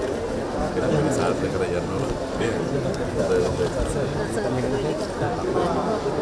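Many men talk at once.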